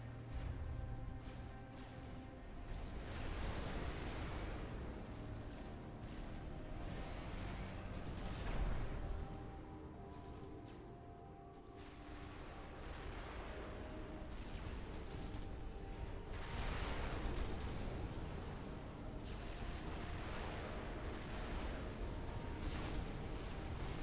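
Explosions and gunfire rumble and crackle in a busy battle.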